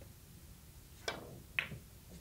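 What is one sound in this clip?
A cue strikes a billiard ball with a sharp knock.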